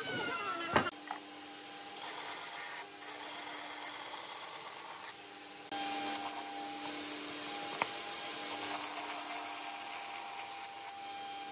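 A band saw hums steadily and cuts through wood.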